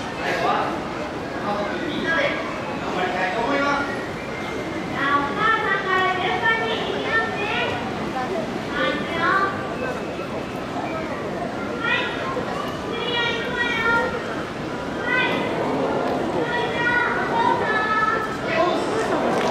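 A woman speaks with animation over a loudspeaker.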